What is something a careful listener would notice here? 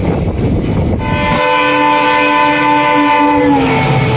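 An oncoming locomotive sounds a long, loud horn that drops in pitch as it passes.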